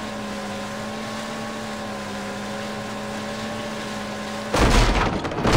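A jet ski engine hums steadily.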